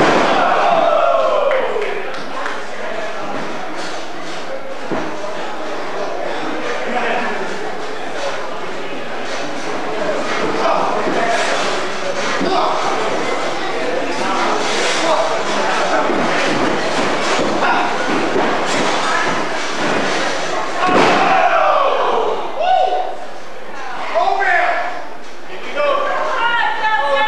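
Wrestlers' bodies thud heavily onto a canvas mat.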